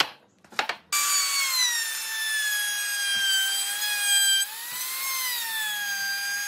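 A handheld trim router whines.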